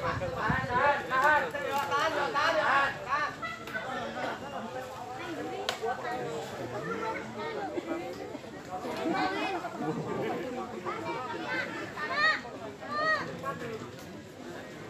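A crowd of men and women talk and call out excitedly nearby, outdoors.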